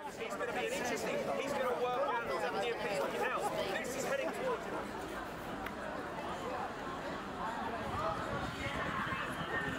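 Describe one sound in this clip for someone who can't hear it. A crowd of men and women talk and shout outdoors at once.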